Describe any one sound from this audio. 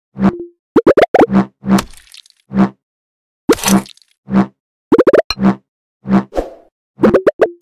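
Wooden chops and thuds sound as blocks are cut.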